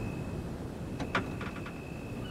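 A car's rear hatch clicks open.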